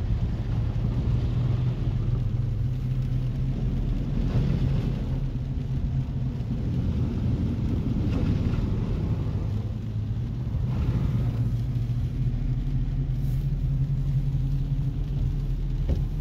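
Rain patters on the windshield.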